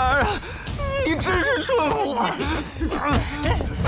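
A young man speaks mockingly and loudly.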